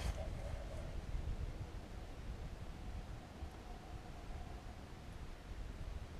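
A fishing reel clicks as line is reeled in.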